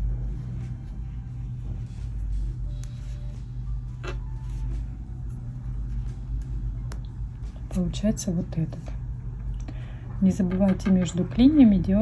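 Knitting needles click softly.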